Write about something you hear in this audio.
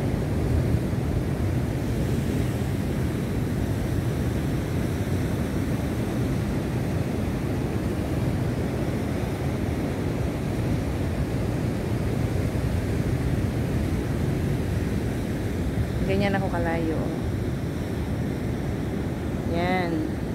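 Waves wash and break against rocks nearby.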